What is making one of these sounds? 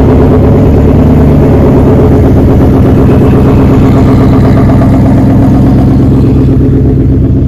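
A car engine rumbles loudly and burbles as the car rolls slowly past close by.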